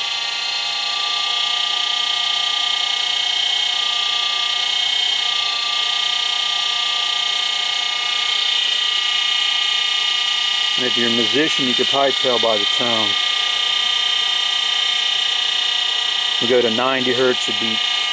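An electric motor hums with a steady high whine that shifts slightly in pitch.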